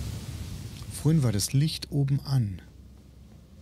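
A man speaks briefly through a microphone, close up.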